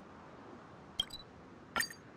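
Game menu sounds click and chime briefly.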